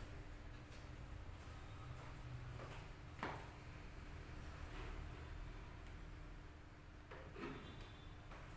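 High heels click on a tiled floor.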